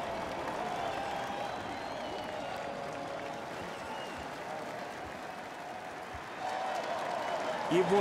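People in a crowd clap their hands.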